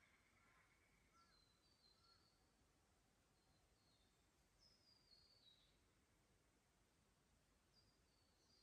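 Water trickles faintly over stones in a shallow creek.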